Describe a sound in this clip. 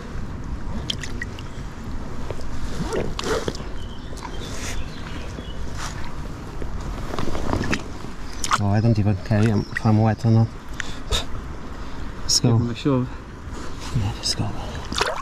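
Water splashes gently in a shallow stream.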